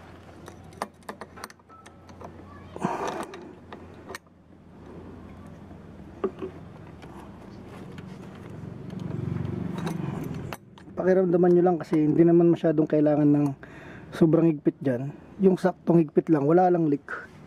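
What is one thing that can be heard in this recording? A metal wrench clicks and scrapes against metal fittings.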